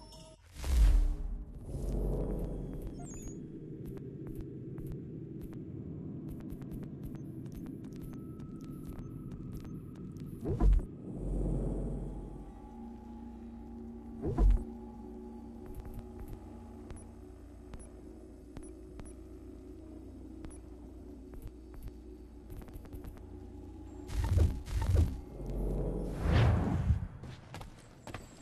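Soft game menu music hums steadily.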